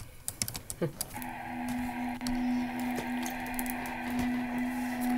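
Soft, steady menu music hums.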